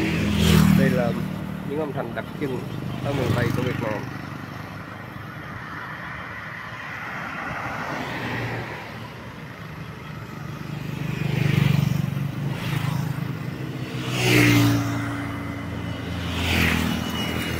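Motorbike engines buzz past close by.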